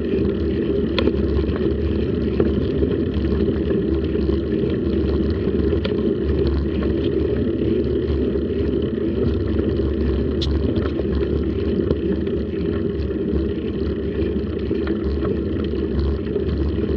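A bicycle rattles with occasional small clicks.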